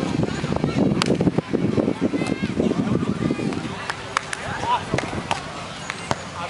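A volleyball is struck with sharp slaps outdoors.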